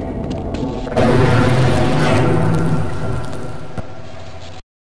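A creature growls loudly nearby.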